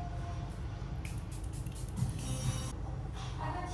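A spray bottle hisses in short bursts close by.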